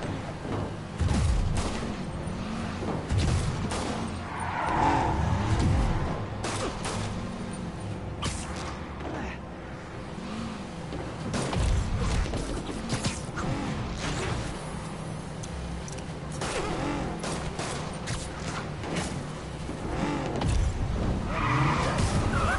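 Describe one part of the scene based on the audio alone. A car engine roars as it speeds along a street.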